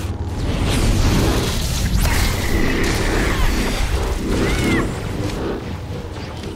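Energy blasts crackle and roar in a loud fight.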